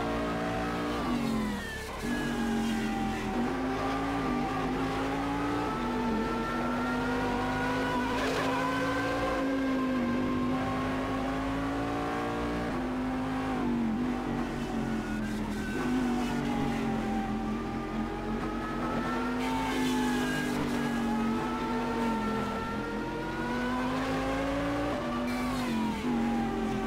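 A racing car engine drops in pitch with each gear change.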